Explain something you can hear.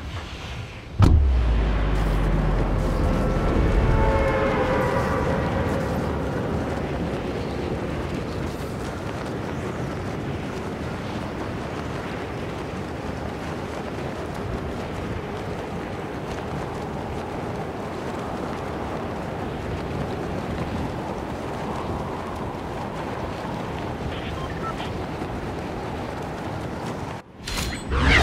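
Air rushes steadily past a gliding figure.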